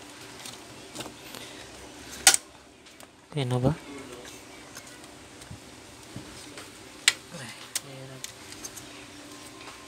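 Plastic parts click and clack as fingers handle them.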